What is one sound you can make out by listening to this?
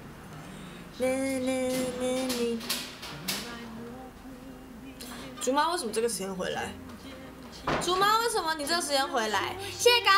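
A young woman sings up close.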